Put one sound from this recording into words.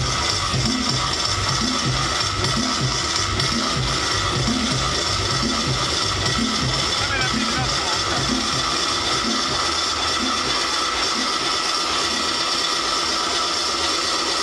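Loud electronic dance music with a thumping beat plays over loudspeakers.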